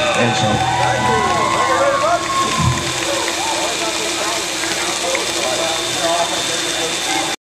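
A large crowd chatters outdoors.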